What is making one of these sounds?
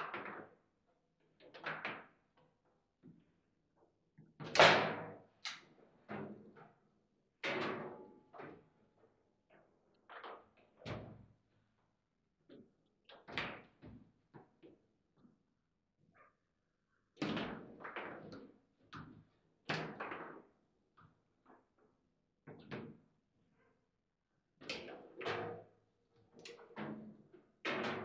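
A ball clacks sharply against table football figures and walls.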